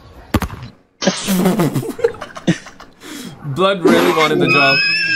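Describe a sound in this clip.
Men laugh loudly over an online call.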